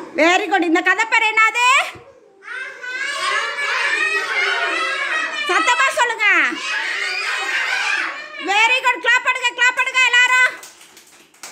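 A group of young children sing together loudly.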